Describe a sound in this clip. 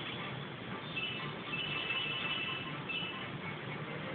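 Bright twinkling chimes ring out.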